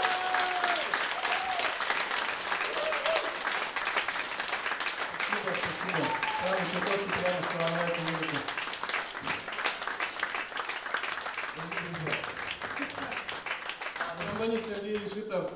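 An audience cheers and claps.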